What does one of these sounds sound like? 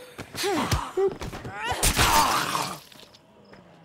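A creature snarls and shrieks.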